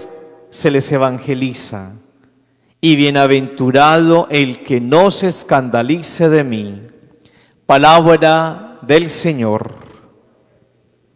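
A man chants in a steady, sung voice through a microphone in an echoing hall.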